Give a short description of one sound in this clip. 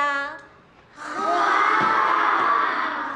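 Children shout out answers together.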